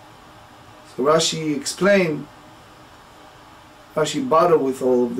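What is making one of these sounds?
A middle-aged man speaks calmly and closely into a microphone, in short phrases.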